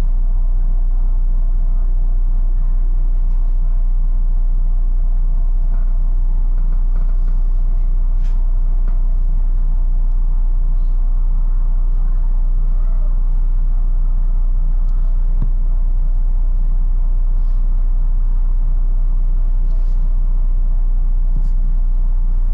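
A bus engine idles with a steady low rumble.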